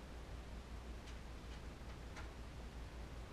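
Footsteps shuffle softly across a floor.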